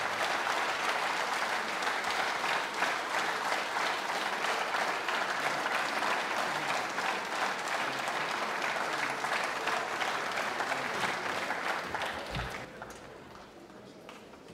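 An audience applauds loudly in a large hall, then the applause fades away.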